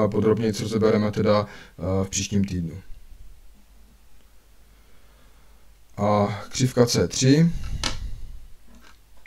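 A man explains calmly, close to a microphone, with pauses.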